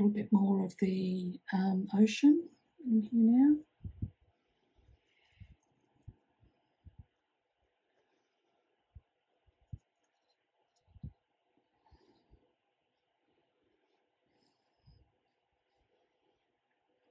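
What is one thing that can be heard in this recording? A paintbrush dabs and taps softly on paper.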